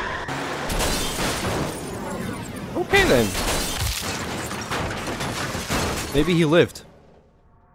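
A vehicle crashes and tumbles with loud rumbling blasts.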